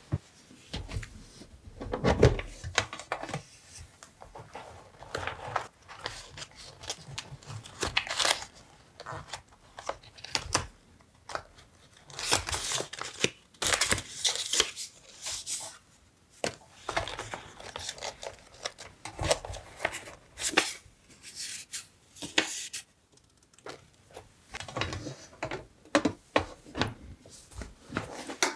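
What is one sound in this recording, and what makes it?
A metal tin lid clanks open and shut.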